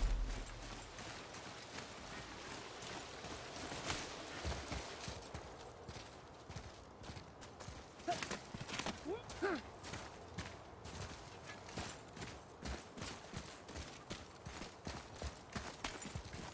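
Footsteps crunch through grass and gravel.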